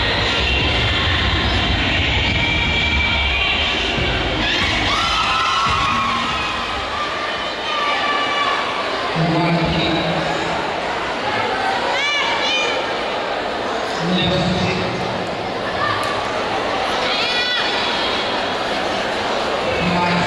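Music plays loudly over loudspeakers in a large echoing hall.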